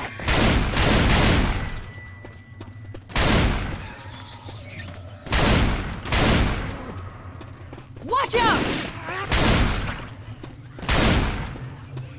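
A shotgun fires loud blasts that echo in a stone tunnel.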